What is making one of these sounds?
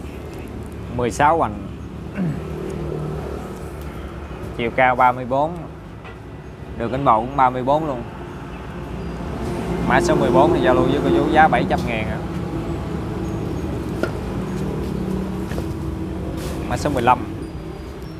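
A middle-aged man speaks close to a clip-on microphone.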